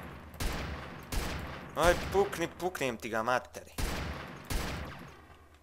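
A pistol fires several loud shots that ring out briefly.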